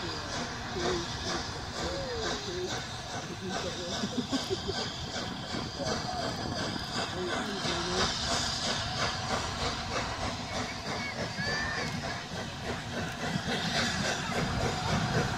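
A steam locomotive chuffs rhythmically as it approaches.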